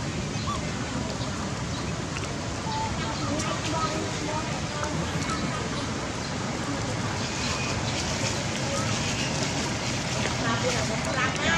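Young macaques squeak and chatter outdoors.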